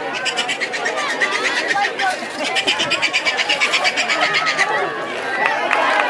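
A crowd of adults and children shouts and cheers outdoors.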